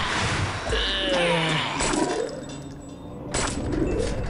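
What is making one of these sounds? A sword clashes in a fight.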